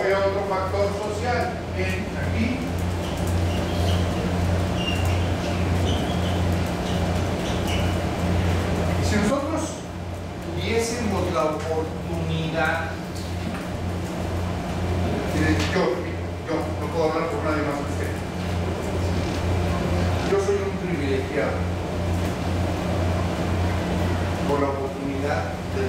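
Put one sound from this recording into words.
A middle-aged man lectures calmly in a room.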